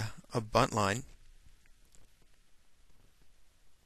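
A cord rubs softly through a metal clip.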